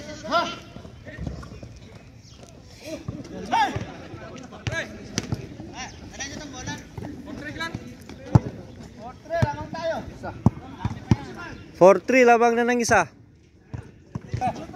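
Young men shout and call out to each other during a game outdoors.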